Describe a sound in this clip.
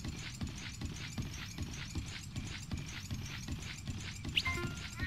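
Footsteps patter quickly on a wooden bridge.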